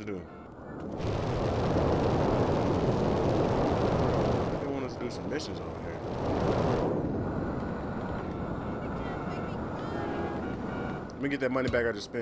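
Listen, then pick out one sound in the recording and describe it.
A jetpack roars with a loud rushing thrust.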